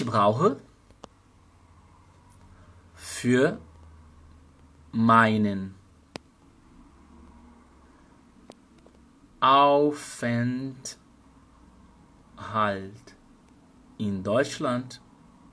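A young man speaks calmly and closely into a microphone, in short phrases with pauses.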